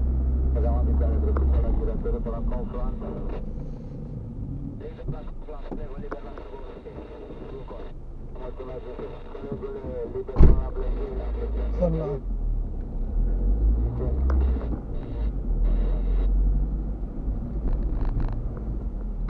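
A car engine hums low and steady while driving slowly.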